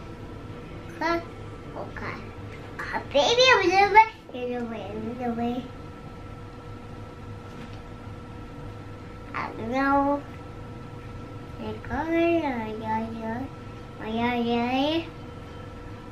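A young girl speaks and sings in a high voice close by.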